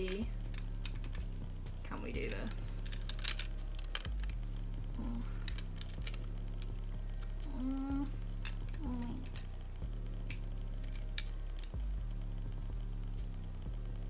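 Plastic packaging crinkles and clicks in hands.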